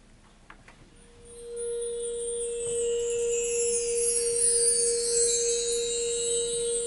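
A concert band begins playing with a sustained note and shimmering cymbals in a large hall.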